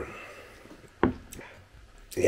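A glass mug knocks down on a table.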